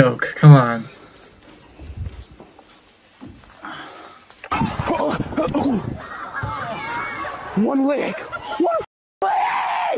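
A young man reacts with loud exclamations close to a microphone.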